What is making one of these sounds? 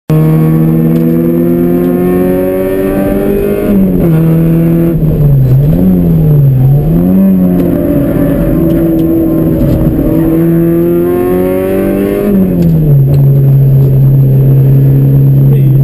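A car engine roars loudly from inside the cabin, revving up and down through gear shifts.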